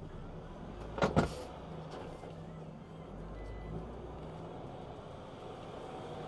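A truck passes close by and fades.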